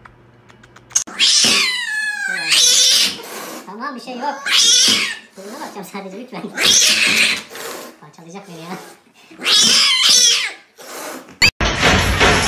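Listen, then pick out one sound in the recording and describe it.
A cat yowls and growls loudly.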